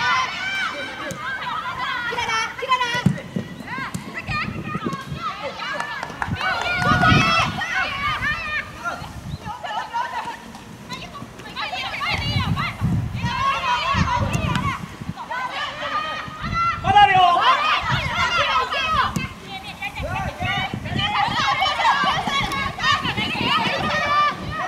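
Players shout to each other across an open outdoor field.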